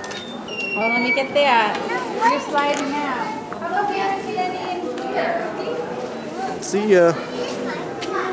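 A woman talks nearby in a warm, animated voice.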